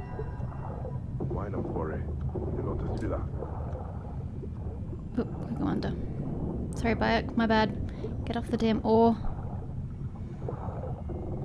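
Bubbles gurgle around a swimming diver.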